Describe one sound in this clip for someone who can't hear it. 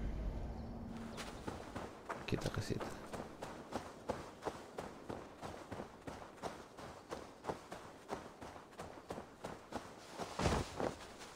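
Footsteps tread quickly through grass.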